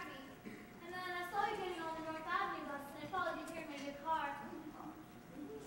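A group of young performers sings together, heard from a distance in a large hall.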